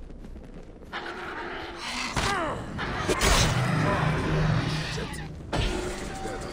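A sword strikes and slashes at an animal.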